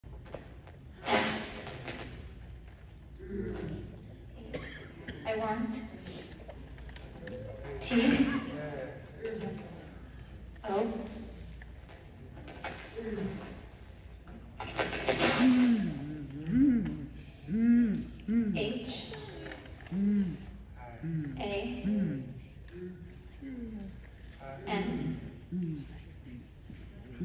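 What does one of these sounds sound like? A woman speaks in short phrases into a microphone, heard over a loudspeaker in a large room.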